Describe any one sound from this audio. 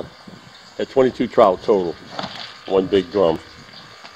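A plastic cooler lid thumps shut.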